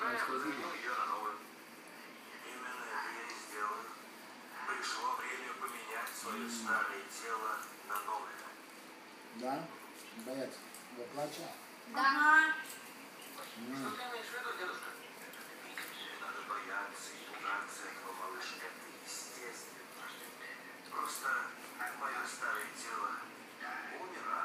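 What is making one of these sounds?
A man and children talk casually nearby.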